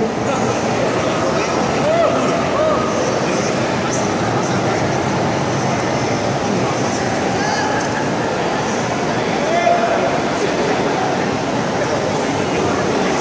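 A man sings into a microphone through loudspeakers.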